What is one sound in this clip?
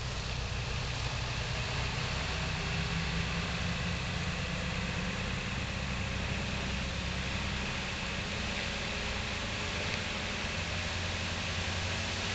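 Tyres crunch on gravel.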